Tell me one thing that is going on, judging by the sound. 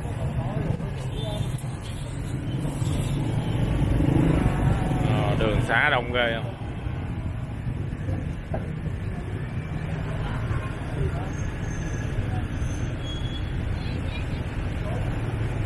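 Wind rushes past on a moving motorbike.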